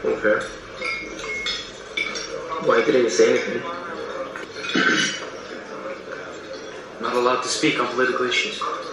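A young man talks calmly, heard through a small speaker.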